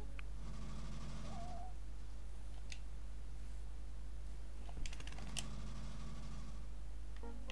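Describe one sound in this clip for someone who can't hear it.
A small motor vehicle engine hums steadily.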